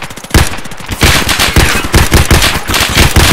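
Rapid gunfire crackles in bursts from nearby.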